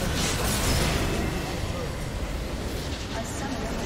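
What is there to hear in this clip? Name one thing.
Spells and attacks crackle and whoosh in a battle.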